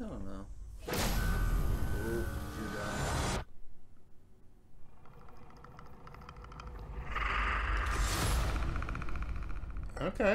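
Dramatic film music swells loudly and cuts off.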